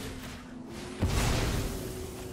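A whooshing magical sweep rushes through and fades.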